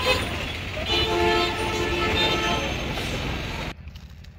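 Small motor engines putter nearby.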